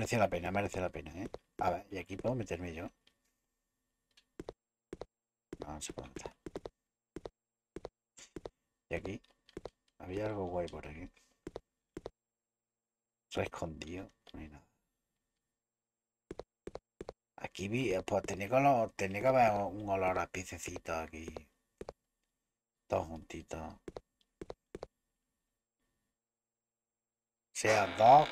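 A young man talks with animation close to a microphone, in bursts with pauses.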